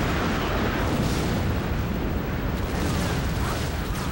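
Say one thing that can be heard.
Explosions rumble and boom nearby.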